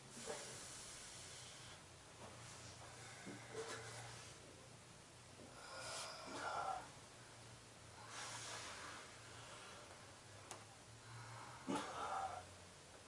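Bodies shift and rustle softly on floor mats.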